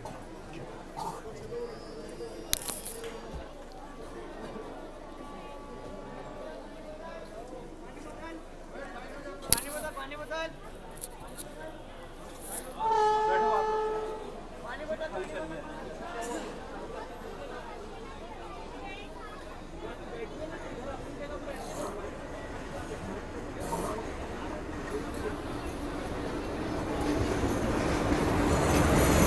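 A crowd murmurs on a railway platform.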